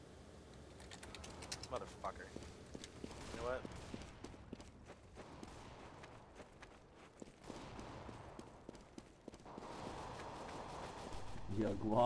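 Footsteps tap steadily on hard ground in a video game.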